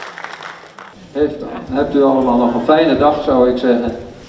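A crowd of elderly people sings together in a large hall.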